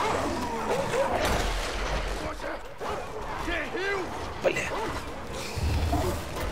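A monster snarls and shrieks.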